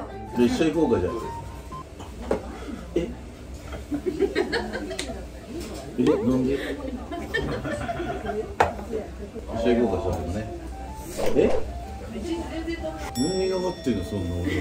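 Dishes clink on a table.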